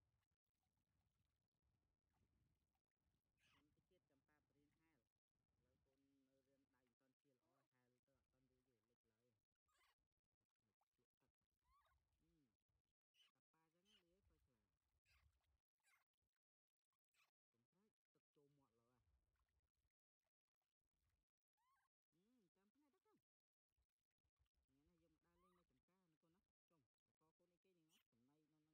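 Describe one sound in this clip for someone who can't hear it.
Water splashes and trickles as hands pour it over a small animal.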